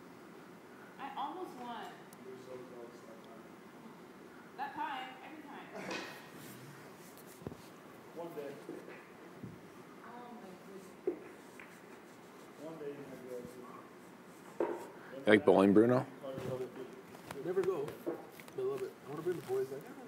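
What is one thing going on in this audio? Young men talk calmly at close range.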